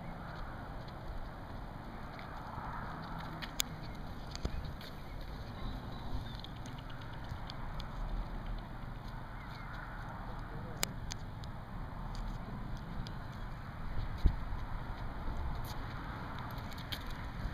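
Shoes step on pavement at a steady walking pace.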